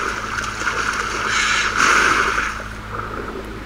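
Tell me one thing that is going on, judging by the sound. Water splashes and churns as something swims at the surface.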